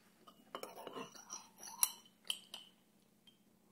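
A spoon stirs and clinks against a ceramic cup.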